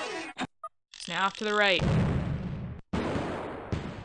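A cannon fires with a boom.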